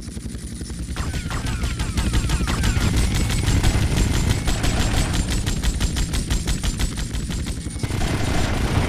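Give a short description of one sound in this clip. A machine gun fires in fast bursts.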